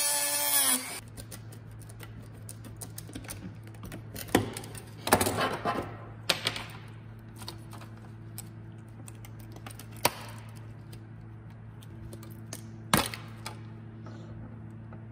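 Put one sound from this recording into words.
Plastic parts click and knock as hands handle them.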